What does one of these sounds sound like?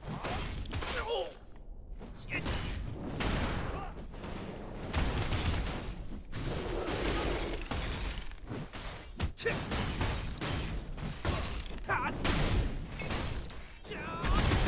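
Sword strikes and magic blasts whoosh and crash in a fast game battle.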